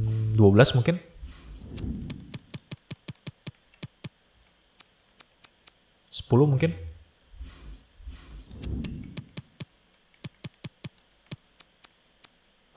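Short game menu clicks tick rapidly.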